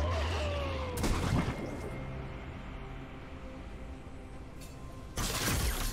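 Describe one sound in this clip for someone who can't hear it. Game bursts crackle sharply.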